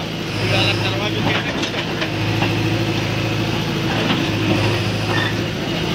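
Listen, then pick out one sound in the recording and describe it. Concrete rubble scrapes and clatters under a digger bucket.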